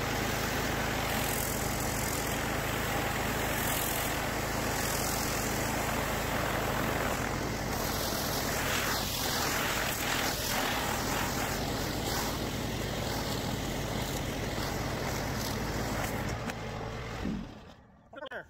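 Pressurized water sprays and hisses against pavement.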